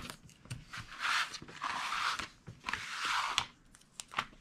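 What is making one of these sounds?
A large sheet of paper slides across a hard surface.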